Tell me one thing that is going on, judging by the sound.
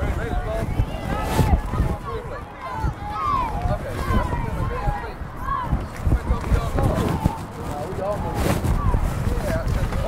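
Spectators shout and cheer close by, with many voices.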